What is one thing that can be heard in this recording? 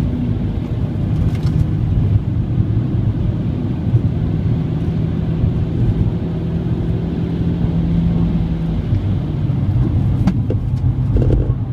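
Tyres roar on asphalt.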